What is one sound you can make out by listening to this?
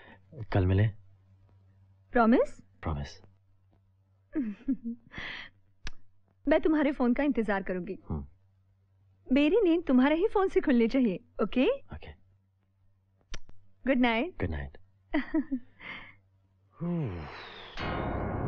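A young woman speaks softly up close.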